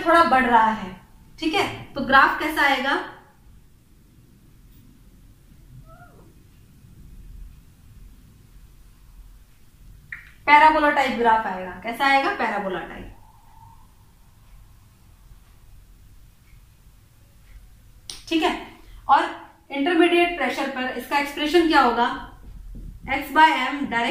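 A young woman explains calmly and clearly, close by, with pauses.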